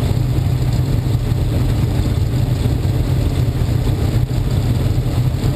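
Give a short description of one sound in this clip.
A race car engine idles close by with a loud, steady low rumble.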